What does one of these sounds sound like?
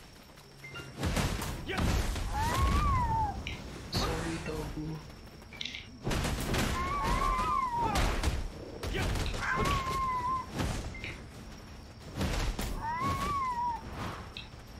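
Game sword strikes and magic blasts crash in bursts.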